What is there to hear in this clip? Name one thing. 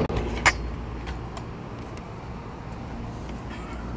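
Scooter wheels roll over pavement.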